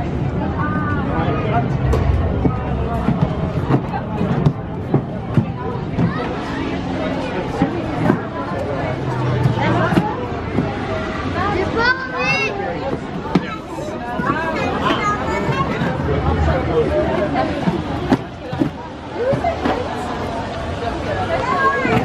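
A crowd of adults and children chatters and calls out nearby.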